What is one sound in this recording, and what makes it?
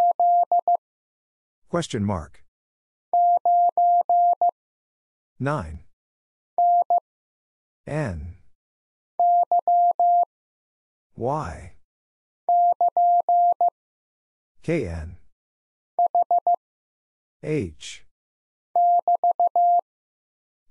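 A telegraph key taps out short and long beeping tones in quick bursts.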